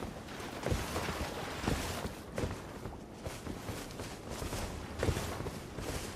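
Footsteps thud steadily on stone and grass.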